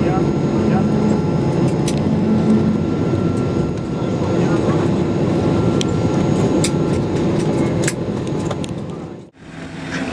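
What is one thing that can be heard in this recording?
An aircraft engine rumbles steadily, heard from inside the cabin.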